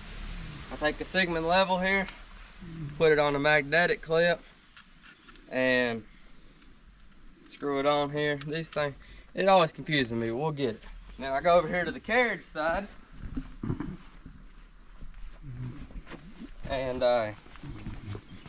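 A young man talks calmly close by, outdoors.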